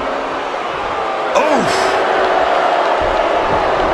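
Bodies slam onto a wrestling mat with a thud.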